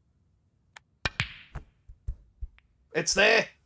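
Snooker balls click against each other.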